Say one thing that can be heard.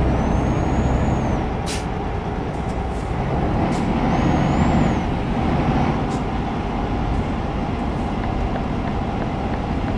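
Tyres roll on a road with a low rumble.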